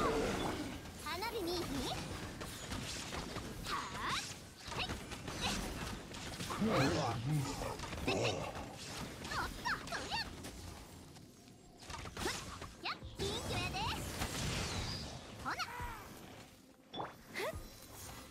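Fiery explosions and electric blasts crackle in quick bursts.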